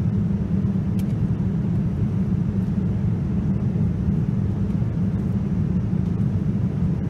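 A jet airliner's engines drone in a low, steady roar from inside the cabin.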